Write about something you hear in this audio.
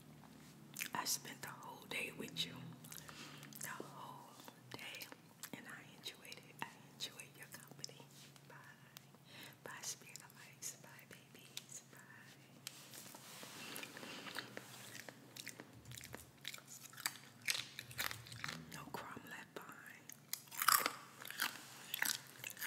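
A woman speaks softly and closely into a microphone.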